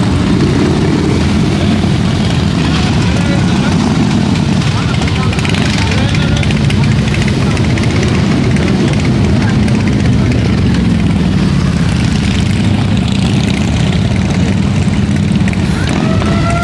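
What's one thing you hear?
Motorcycle engines rumble loudly and rev as they ride past close by.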